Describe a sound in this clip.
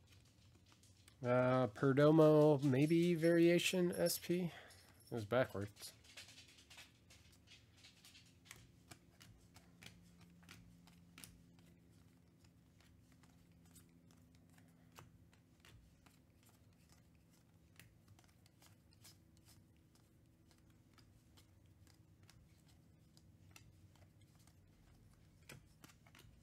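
Trading cards are shuffled and flicked, with soft, quick snaps.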